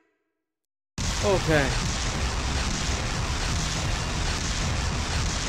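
Video game sound effects crash and whoosh during a fight.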